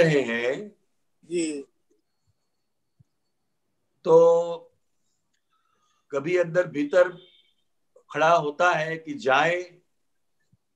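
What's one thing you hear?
An elderly man chants in short bursts over an online call.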